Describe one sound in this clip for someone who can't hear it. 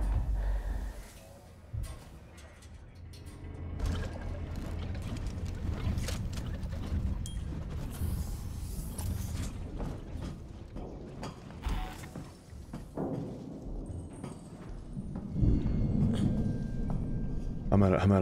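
Footsteps clank slowly on a metal floor.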